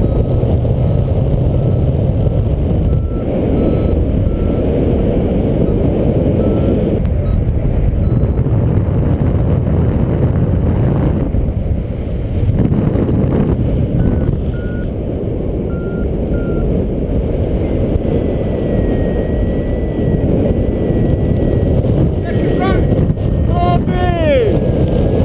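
Wind rushes loudly and steadily past a paraglider in flight.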